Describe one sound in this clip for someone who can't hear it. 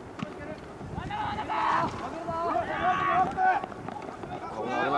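Young men shout loudly outdoors.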